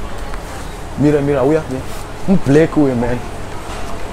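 A man talks nearby in short phrases.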